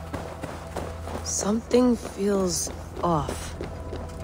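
Footsteps run up stone steps.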